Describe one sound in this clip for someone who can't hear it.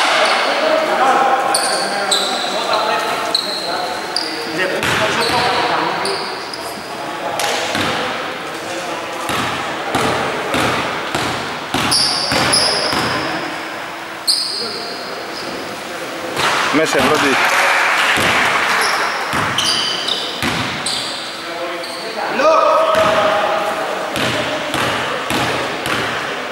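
Players shout and call out across a large echoing hall.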